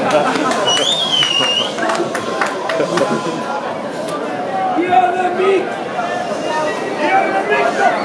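A large crowd chatters and calls out all around in an open stadium.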